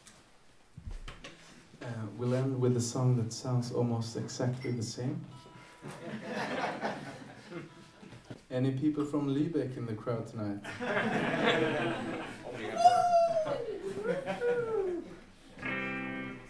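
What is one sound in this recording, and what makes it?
A young man speaks calmly into a microphone nearby.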